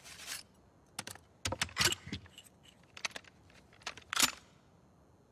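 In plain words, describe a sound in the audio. Metal parts of a shotgun click and clack as they are handled.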